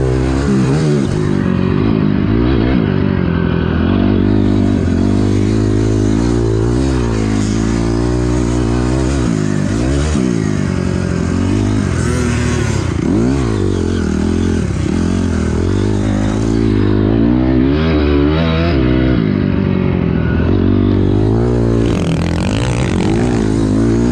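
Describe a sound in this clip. A dirt bike engine revs loudly up and down close by.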